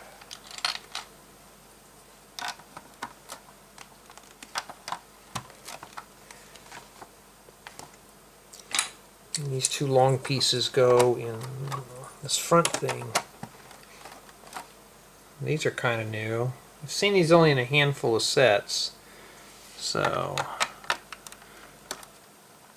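Plastic toy bricks click and snap as they are pressed together.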